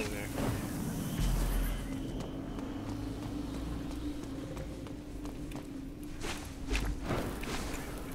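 A sword whooshes as it swings through the air.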